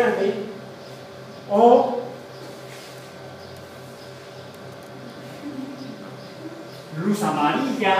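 A young man speaks to a room with animation, in short bursts.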